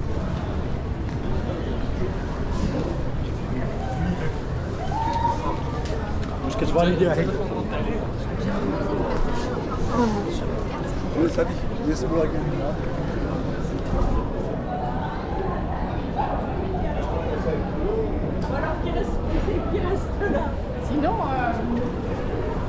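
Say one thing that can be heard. Footsteps tap on cobblestones nearby.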